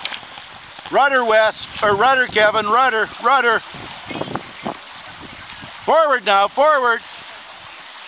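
A man shouts loudly from nearby on the water.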